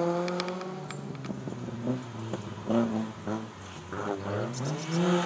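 A rally car engine revs hard and rises and falls in pitch as it shifts gears close by.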